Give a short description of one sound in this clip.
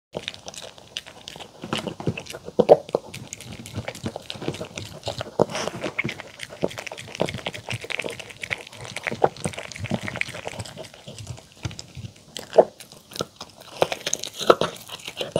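A dog crunches and chews food close by.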